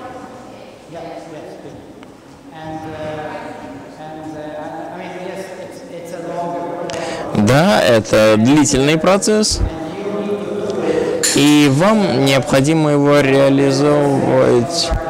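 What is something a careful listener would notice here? A man lectures calmly through a microphone in a large echoing hall.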